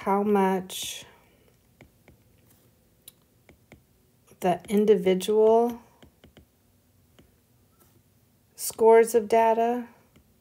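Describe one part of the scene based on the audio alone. A stylus taps and scratches lightly on a tablet.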